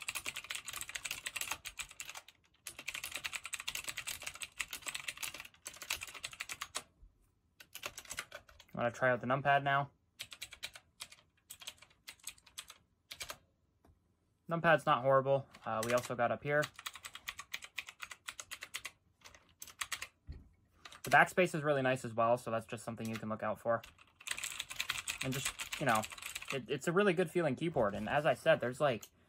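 Keys on a mechanical keyboard clatter rapidly, close by.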